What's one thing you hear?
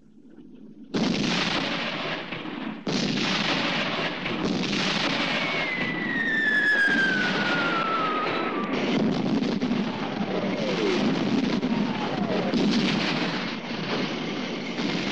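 Shells explode with heavy blasts nearby.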